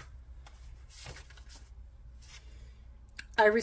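A paper card rustles softly as it is picked up and turned.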